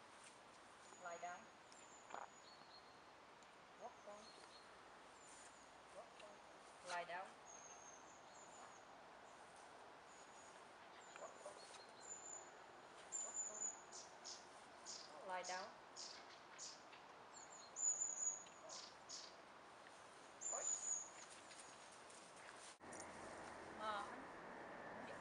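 A woman calls out short commands to a dog outdoors.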